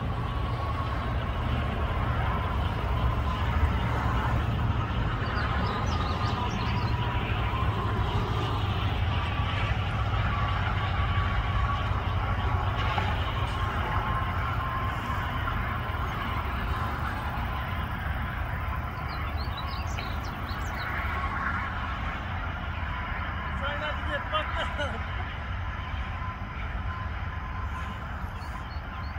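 Wind buffets steadily outdoors.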